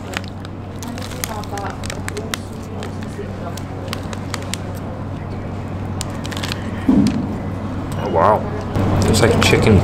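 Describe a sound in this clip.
A man chews food with his mouth open, smacking his lips.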